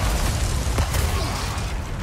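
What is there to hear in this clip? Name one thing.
A fiery explosion booms.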